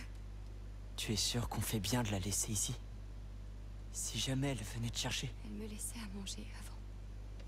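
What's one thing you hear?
A boy speaks quietly, close by.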